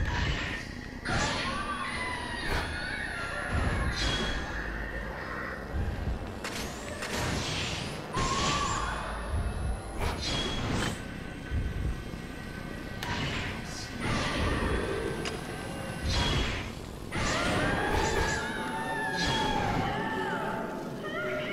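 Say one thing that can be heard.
Chimes ring out as game scores tally.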